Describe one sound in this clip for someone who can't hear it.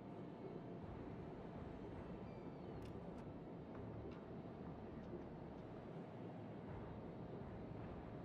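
Heavy naval guns fire with loud booms.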